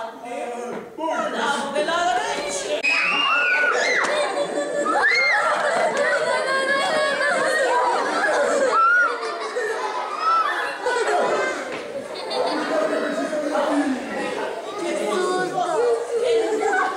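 A crowd of young children shouts and laughs excitedly close by.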